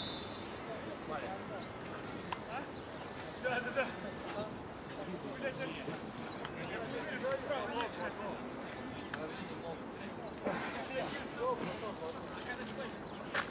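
Players call out to each other on an open field at a distance.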